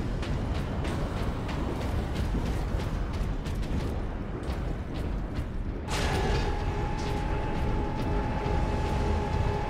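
Heavy armoured footsteps clank steadily on a metal floor.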